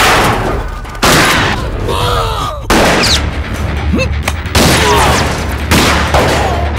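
Gunshots ring out loudly, one after another.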